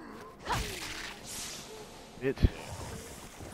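A heavy blow lands with a dull thud.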